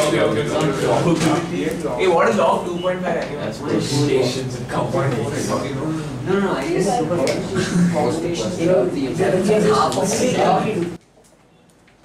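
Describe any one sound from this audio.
A man lectures loudly and steadily into a microphone.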